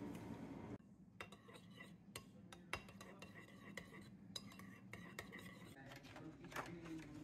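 A spoon scrapes and clinks against a ceramic bowl while stirring.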